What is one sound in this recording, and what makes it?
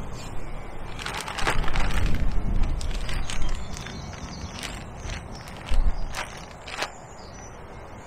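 Gear rustles and clatters close by as a man rummages through it.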